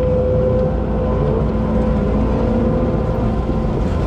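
A diesel engine of an excavator idles nearby.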